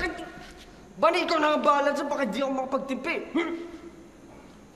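A young woman speaks tearfully.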